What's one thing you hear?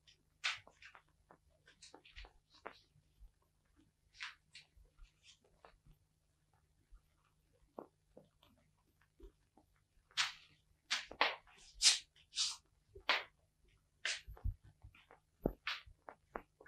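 A middle-aged man speaks in short bursts.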